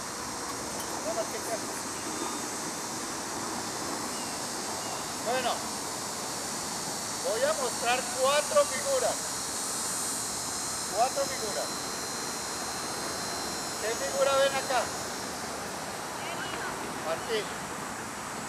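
A man calls out instructions loudly across an open field outdoors.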